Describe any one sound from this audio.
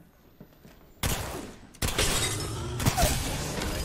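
A rifle fires in rapid loud bursts.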